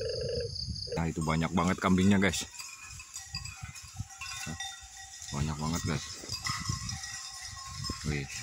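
Sheep bleat nearby outdoors.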